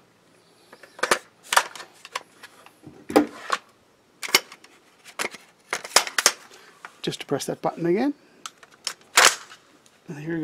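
Metal parts click and clack as a rifle is taken apart and put back together.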